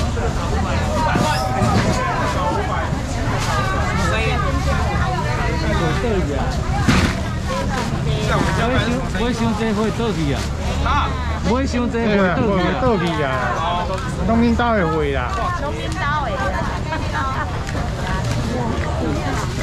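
A crowd of men and women chatters loudly all around.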